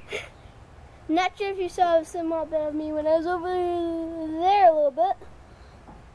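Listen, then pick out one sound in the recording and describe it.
A young boy talks close by with animation.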